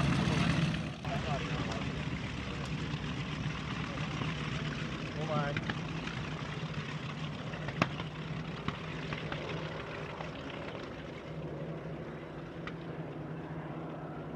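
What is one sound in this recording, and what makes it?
Several propeller planes drone overhead in the distance.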